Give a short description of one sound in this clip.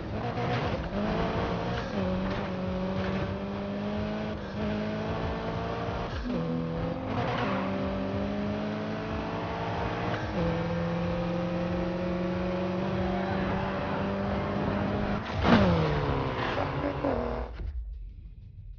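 A car engine roars at high revs, shifting gears as it speeds up.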